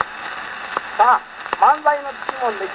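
Old scratchy recorded music plays from a gramophone.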